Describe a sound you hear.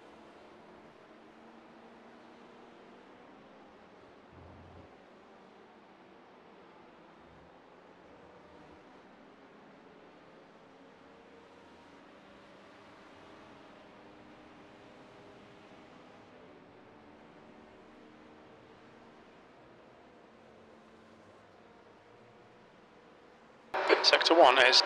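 Race car engines drone faintly and steadily.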